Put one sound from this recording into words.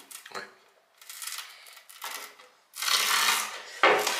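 A blade scrapes and scores across a hard plastic sheet.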